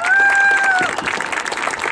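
A marching band holds a loud final note outdoors, then stops.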